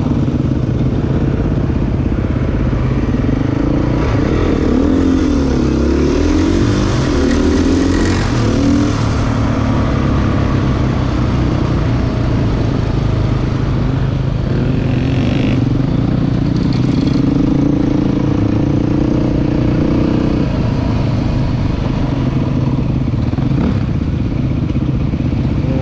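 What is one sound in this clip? Another motorcycle engine buzzes nearby.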